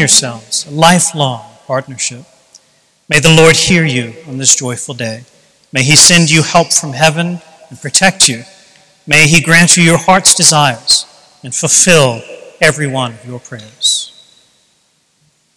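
An elderly man speaks calmly and slowly in a large echoing hall.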